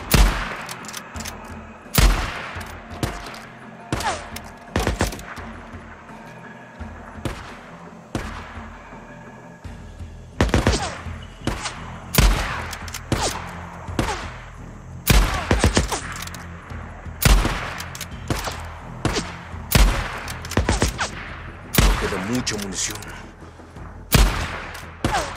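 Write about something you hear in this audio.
Gunshots ring out again and again, each with a sharp crack that echoes.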